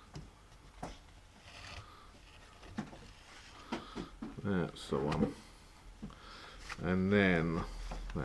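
Stiff paper rustles and taps as a card is folded and handled.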